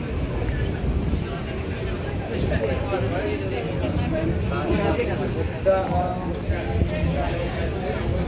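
A crowd of men and women chatter nearby outdoors, growing louder.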